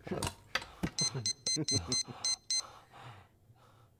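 A man talks quietly on a phone.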